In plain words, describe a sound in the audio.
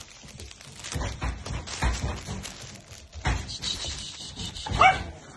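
A dog chews and rustles a soft toy close by.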